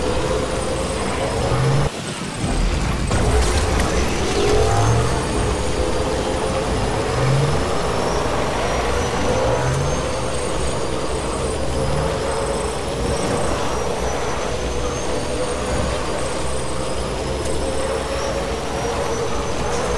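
Rain falls.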